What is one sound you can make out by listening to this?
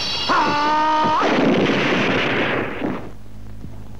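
A stone block shatters with a loud crash.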